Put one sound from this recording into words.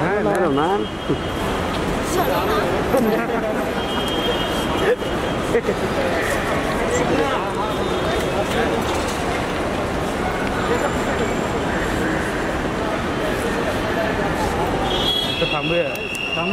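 Several people talk and call out in a large echoing hall.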